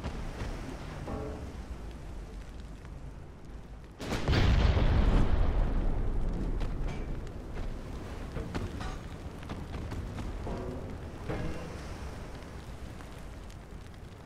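Heavy guns fire with deep, rumbling booms.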